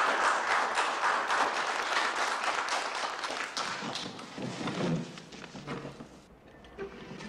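A crowd applauds loudly and then dies down.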